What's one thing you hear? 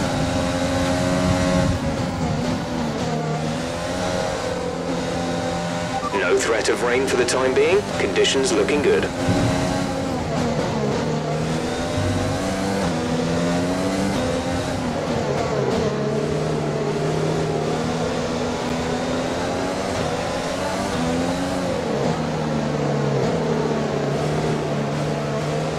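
A racing car engine hums and whines, its pitch rising and falling as the car speeds up and slows down.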